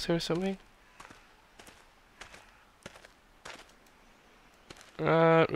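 Footsteps crunch steadily over dry leaves.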